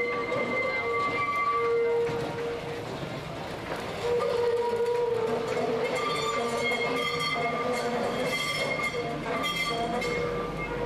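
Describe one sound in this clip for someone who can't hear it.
A tram rolls slowly along the tracks.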